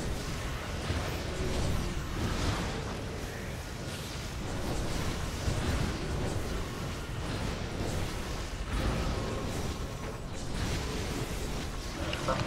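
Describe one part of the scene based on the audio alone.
Spell effects whoosh and crackle in a fantasy battle.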